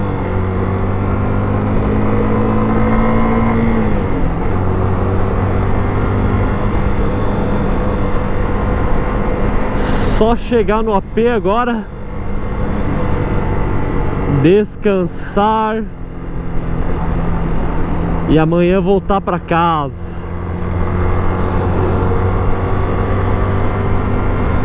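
A single-cylinder 250 cc motorcycle engine hums while cruising at speed.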